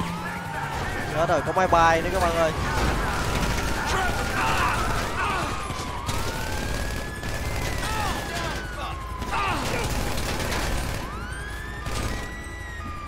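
Police sirens wail and rise and fall nearby.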